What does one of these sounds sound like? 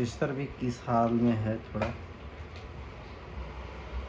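A memory module clicks into place in a circuit board.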